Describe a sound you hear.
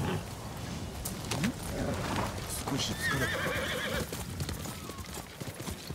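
A horse's hooves thud on soft ground at a trot.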